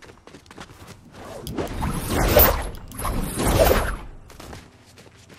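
Wind rushes loudly, then fades.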